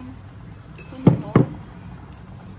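A glass jar knocks twice against a hard counter.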